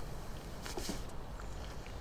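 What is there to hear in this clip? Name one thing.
A young woman speaks quietly into a phone, close by.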